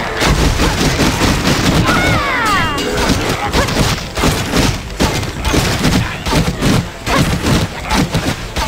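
A sword slashes and strikes a creature again and again.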